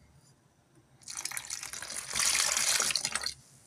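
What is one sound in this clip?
Water pours from a kettle into a bowl of flour.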